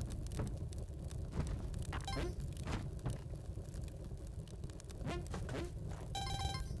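Short video game sound effects pop and thud.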